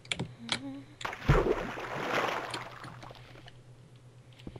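A pickaxe chips at stone.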